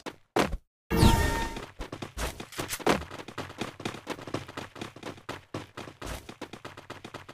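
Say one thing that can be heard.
Quick footsteps patter on a hard floor and up stairs.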